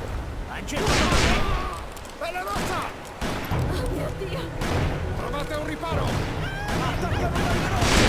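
A man speaks with urgency.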